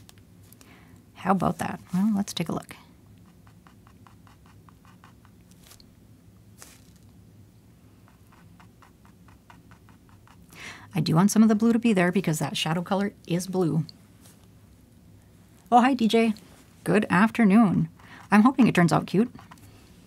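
A paintbrush softly scratches and dabs on canvas.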